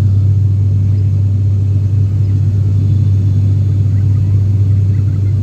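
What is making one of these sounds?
A propeller plane's engines drone loudly and steadily from inside the cabin.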